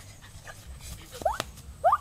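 Footsteps swish through grass outdoors.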